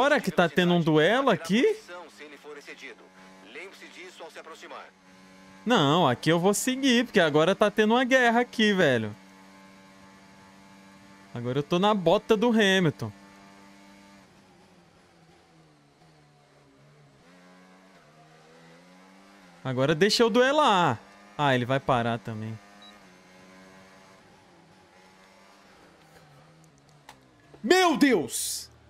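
A racing car engine whines and shifts gears.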